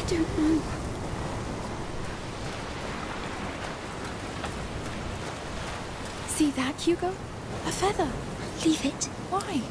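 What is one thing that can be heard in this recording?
Waves wash against rocks.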